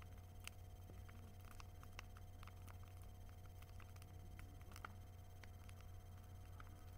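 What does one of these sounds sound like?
A large bonfire crackles and pops outdoors.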